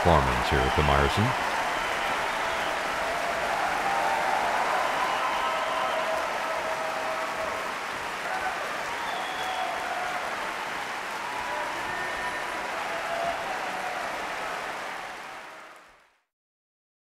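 A large audience applauds and cheers loudly in a big hall.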